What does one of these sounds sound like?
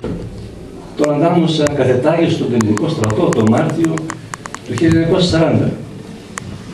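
An elderly man reads aloud into a microphone.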